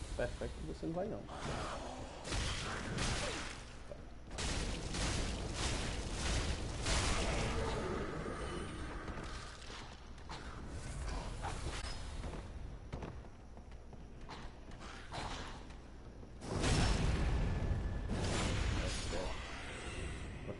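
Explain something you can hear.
Sword blades clash and slash in a fight.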